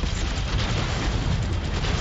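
An explosion booms with a low rumble in a video game battle.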